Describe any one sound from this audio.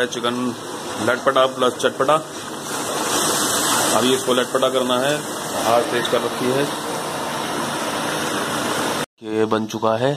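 Food sizzles and bubbles in a hot pan.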